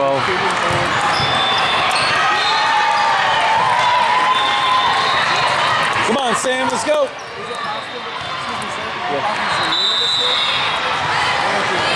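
Young women shout and call to each other during a game.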